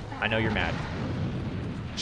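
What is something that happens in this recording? Flames roar in a burst of fire.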